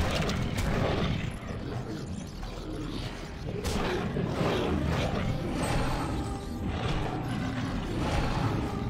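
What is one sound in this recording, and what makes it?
Wind howls steadily outdoors.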